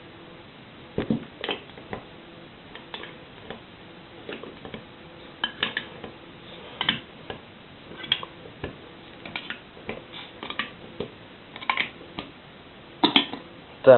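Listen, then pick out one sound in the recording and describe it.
A can opener clicks and pries at a metal jar lid.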